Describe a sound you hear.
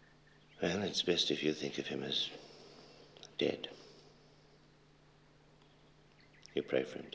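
A man speaks calmly and sternly nearby.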